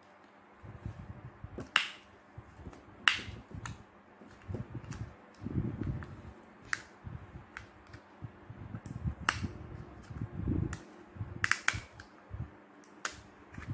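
Plastic parts click and rattle as hands handle a small device.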